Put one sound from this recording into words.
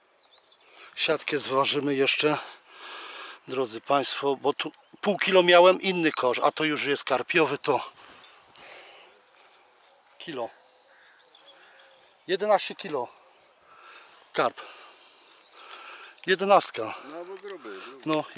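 A man talks calmly and close by.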